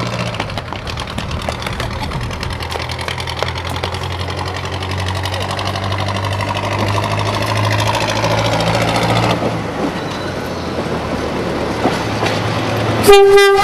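Railcar wheels click and clatter over the rails.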